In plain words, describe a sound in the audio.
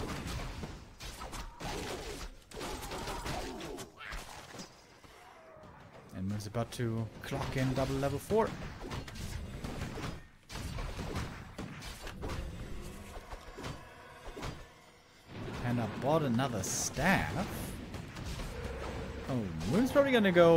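Game sound effects of a battle clash and crack.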